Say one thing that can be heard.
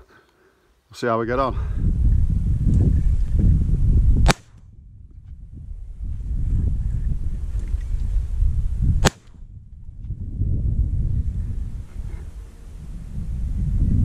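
Wind buffets the microphone with a low rumble.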